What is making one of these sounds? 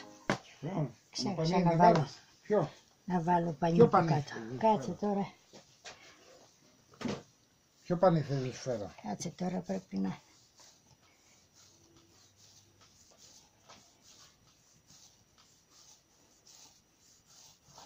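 Hands knead and roll soft dough on a wooden board with quiet thumps.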